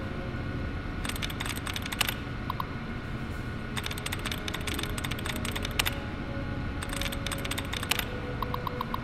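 Keys clatter rapidly on an old computer keyboard.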